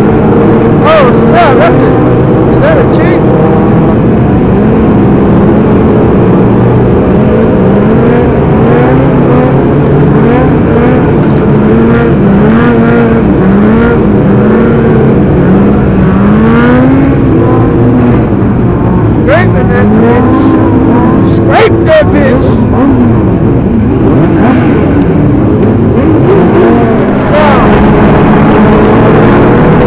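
Motorcycle engines rev up and down loudly close by.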